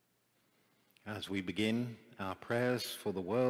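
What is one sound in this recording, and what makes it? A man reads out calmly through a microphone in a large echoing hall.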